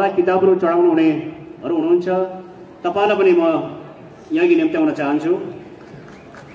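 A man speaks loudly over a loudspeaker with an echo outdoors.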